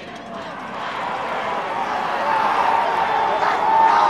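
Young men shout and whoop together.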